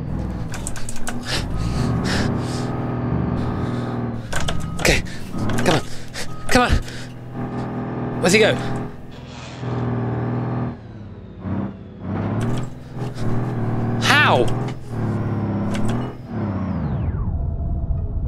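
A truck engine drones and revs.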